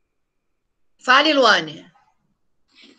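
An older woman speaks calmly over an online call.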